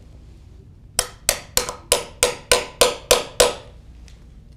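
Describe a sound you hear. A hammer taps sharply on a metal pin in wood, many times in quick succession.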